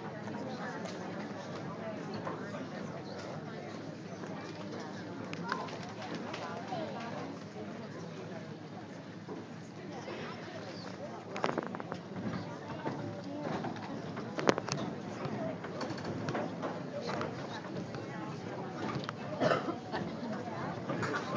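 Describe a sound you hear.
A group of children sing together in a large echoing hall.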